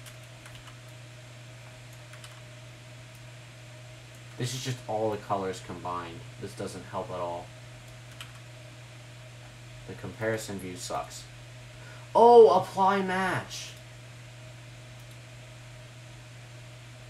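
A computer mouse clicks softly.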